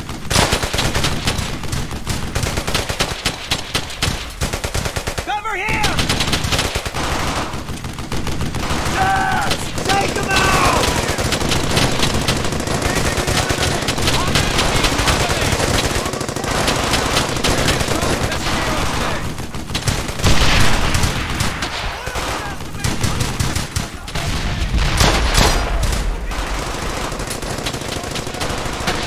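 Gunfire crackles and rattles in rapid bursts.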